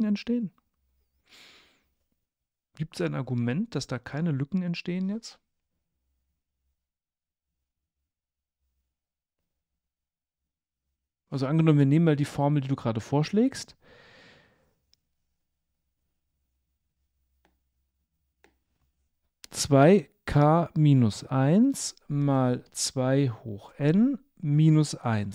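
A man speaks close to a microphone, calmly explaining with pauses.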